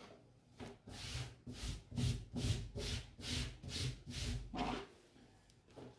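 Hands rub and smooth fabric with a rhythmic rustling.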